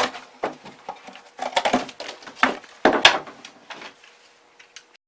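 Cardboard rustles and scrapes as it is handled.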